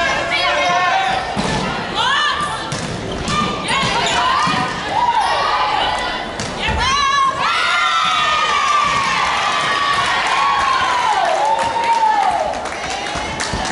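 Shoes squeak on a wooden court.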